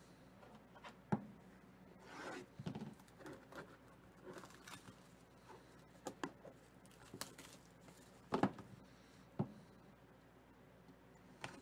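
Plastic wrap crinkles and tears as it is pulled off a box.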